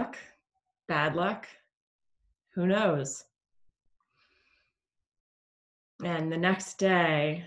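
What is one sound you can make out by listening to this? A woman speaks calmly and slowly, close to a microphone, with long pauses.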